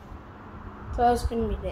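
A young boy speaks close to the microphone.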